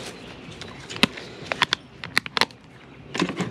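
A plastic case clicks and rattles in a hand.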